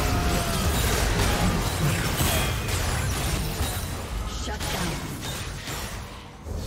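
Video game battle effects clash, crackle and boom.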